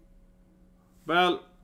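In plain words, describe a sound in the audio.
A man lets out a short, loud exclamation close to a microphone.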